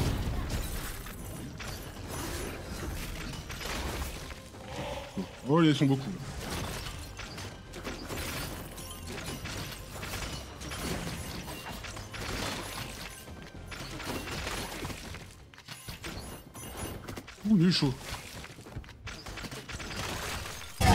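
Game fighting sound effects clash and zap.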